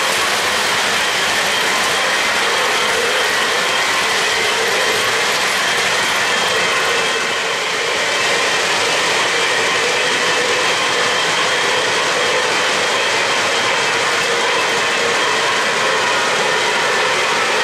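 Model trains rattle and hum steadily along their tracks.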